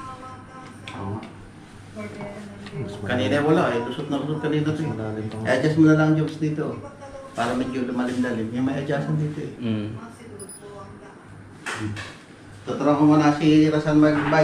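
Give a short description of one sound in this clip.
An older man answers from a little further off.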